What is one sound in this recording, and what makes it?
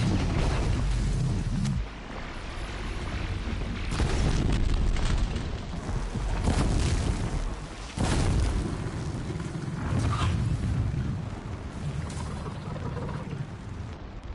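Arrows whoosh from a bow.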